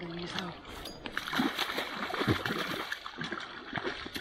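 A fish thrashes and splashes in shallow water at the water's edge.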